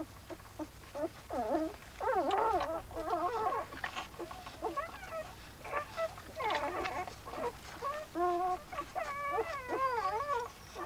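Puppies whimper and squeak softly up close.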